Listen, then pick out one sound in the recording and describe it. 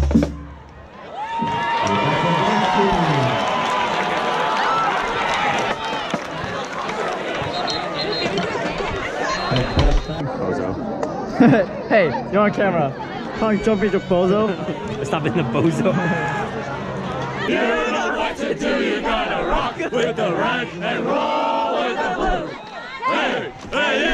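A brass band plays loudly outdoors.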